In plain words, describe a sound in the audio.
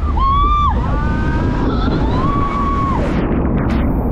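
A boat plunges into water with a loud splash.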